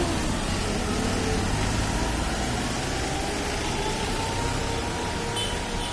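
A bus engine rumbles and pulls away.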